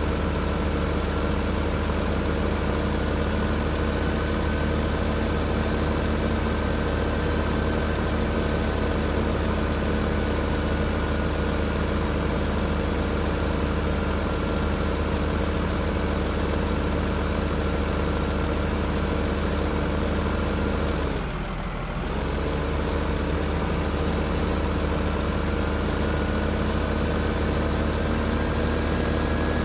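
A heavy diesel engine rumbles steadily as a loader drives along.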